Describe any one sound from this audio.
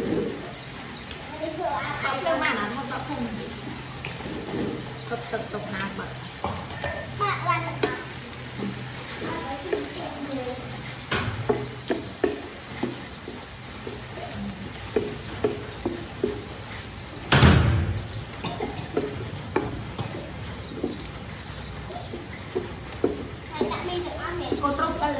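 A wooden spatula scrapes and knocks against a metal pot.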